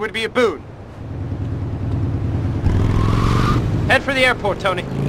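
A motorcycle engine idles and revs with a low rumble.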